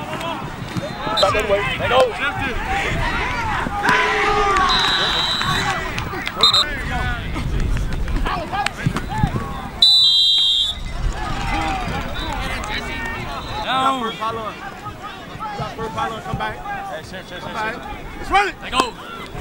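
A crowd of young people shouts and cheers outdoors.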